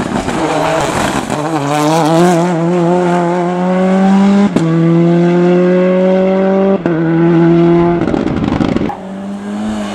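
A rally car engine revs hard and roars away into the distance.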